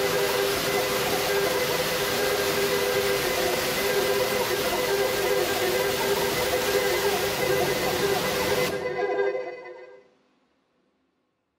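Loud electronic music with dense noise and steady droning tones plays through loudspeakers, then stops abruptly and fades into silence.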